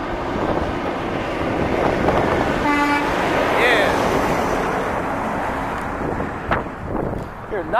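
A heavy truck approaches and roars past close by, then fades away.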